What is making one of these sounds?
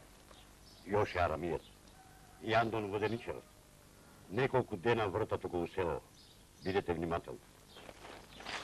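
A woman answers calmly up close.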